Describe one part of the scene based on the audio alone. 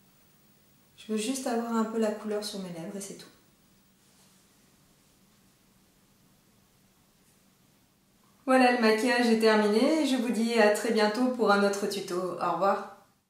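A young woman speaks clearly and warmly, close to a microphone.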